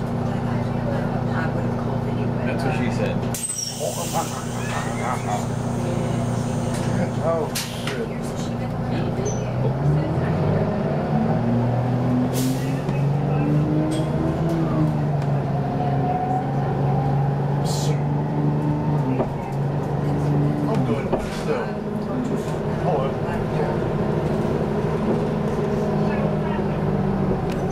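A bus engine hums and rumbles steadily.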